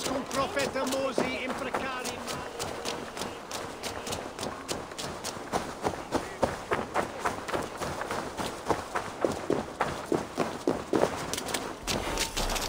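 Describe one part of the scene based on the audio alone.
Quick footsteps run on dirt and grass.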